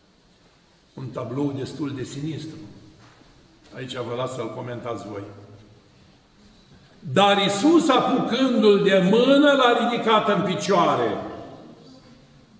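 An elderly man chants aloud in a slow, solemn voice, close by.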